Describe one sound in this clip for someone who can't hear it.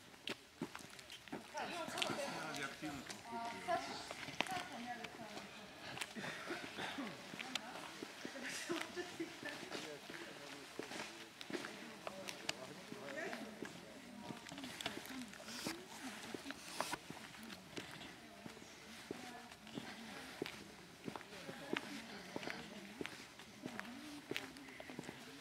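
A group of adults talks among themselves nearby.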